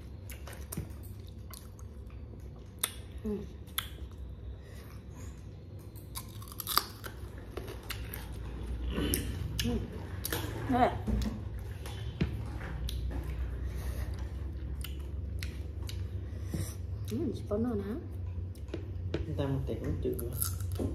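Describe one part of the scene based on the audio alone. A young woman chews and crunches food close up.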